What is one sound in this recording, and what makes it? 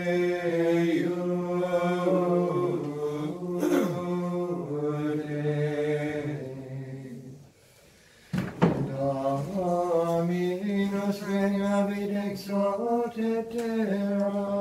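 Men's voices sing a slow, sustained chant that echoes through a large hall.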